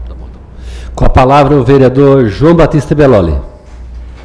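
A man speaks through a microphone in a large room.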